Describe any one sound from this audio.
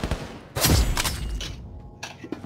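A gun's magazine is swapped with metallic clicks and clacks.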